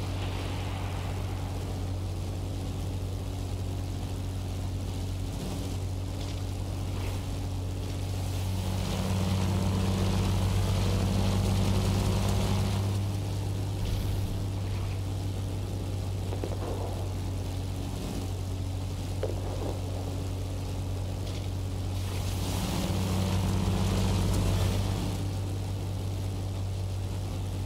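A propeller engine drones steadily, swelling louder at times.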